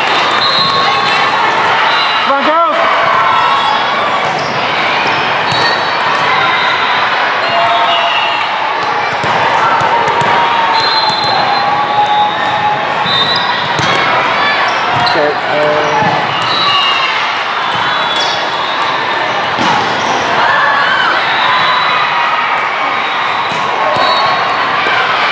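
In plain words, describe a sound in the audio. Players' shoes squeak sharply on a hard court in a large echoing hall.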